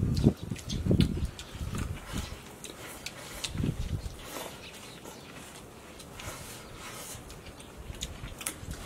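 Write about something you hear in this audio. Several people slurp and chew food noisily up close.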